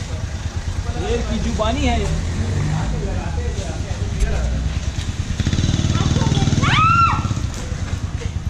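Young women talk and call out with animation nearby, outdoors.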